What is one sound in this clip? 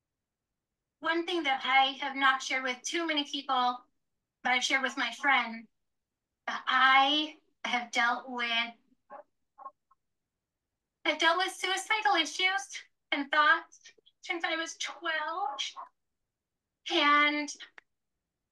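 A young woman talks with animation, heard through a phone microphone.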